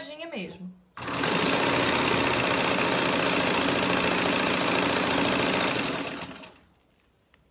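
A sewing machine whirs steadily as it stitches, then stops.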